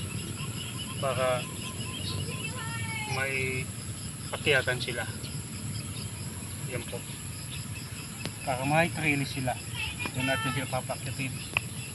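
A man speaks nearby, outdoors.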